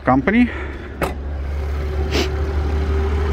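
A car hood latch clicks and the hood swings open.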